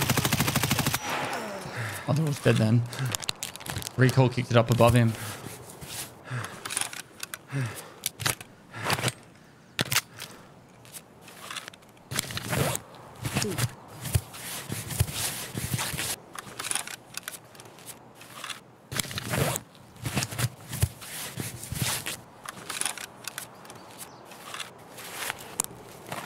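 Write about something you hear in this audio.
A man talks casually and close up into a microphone.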